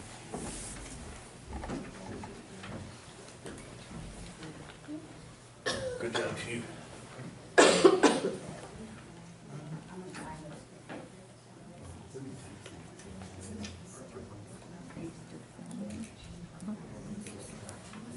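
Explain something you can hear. A man speaks calmly at a distance in a large room.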